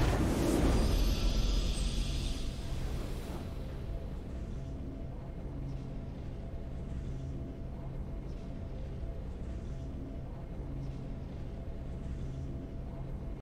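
A triumphant game fanfare plays and then settles into a soft, steady tune.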